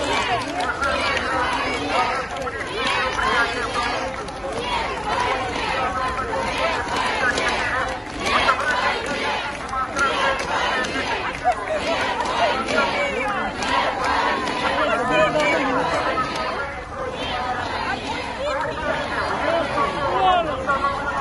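A crowd of men and women shout and talk loudly all around, close by.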